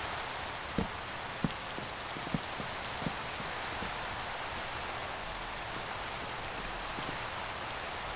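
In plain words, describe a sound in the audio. Rain falls steadily and hisses.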